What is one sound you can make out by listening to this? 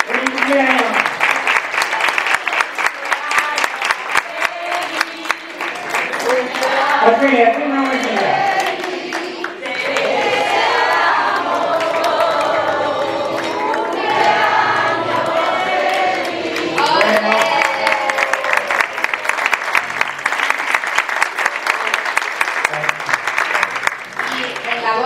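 A group of people clap their hands in a quick, steady rhythm.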